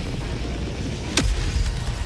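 A gatling turret fires rapidly.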